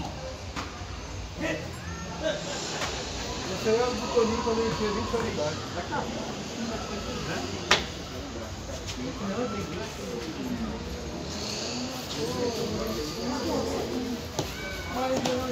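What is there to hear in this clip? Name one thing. Plastic game pieces click on a board.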